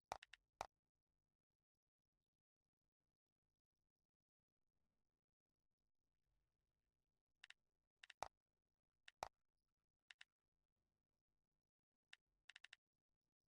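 Short interface clicks sound as menu options are selected.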